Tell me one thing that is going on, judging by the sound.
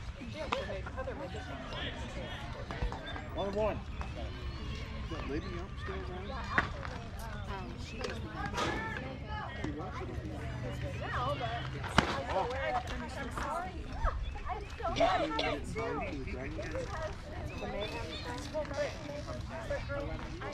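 Men and women chatter and call out nearby, outdoors.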